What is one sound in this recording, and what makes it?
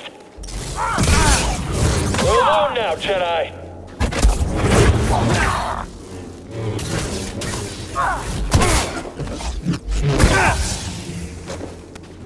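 Lightsabers clash with sharp crackles.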